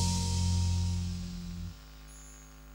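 A band plays loudly through loudspeakers and stops abruptly.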